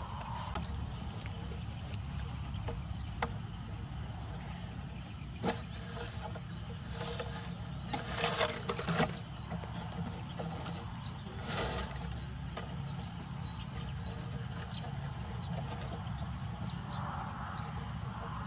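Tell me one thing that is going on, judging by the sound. A wire scrapes against a plastic pipe.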